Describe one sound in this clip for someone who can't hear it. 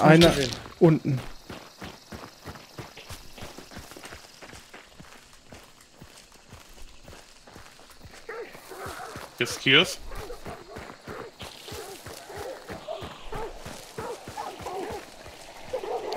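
Footsteps crunch steadily over dirt and dry leaves.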